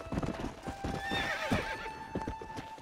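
A horse whinnies loudly as it rears.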